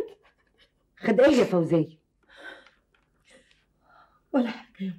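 An older woman speaks calmly and firmly close by.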